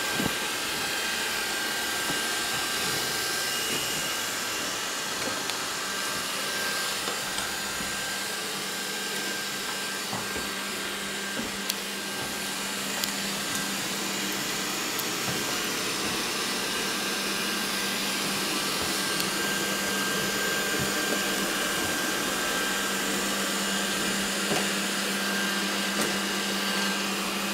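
A robot vacuum cleaner hums and whirs steadily as it moves.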